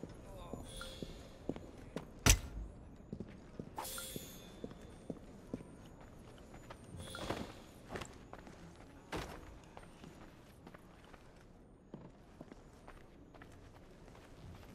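Footsteps tap softly on a wooden floor and stairs.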